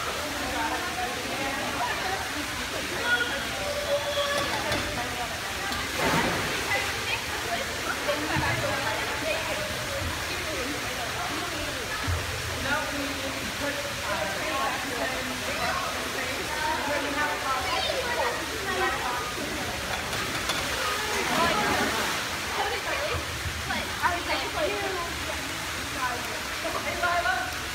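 Children shout and chatter in a large echoing hall.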